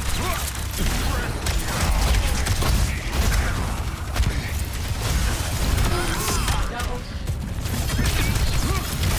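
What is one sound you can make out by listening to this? Rapid gunfire rattles throughout.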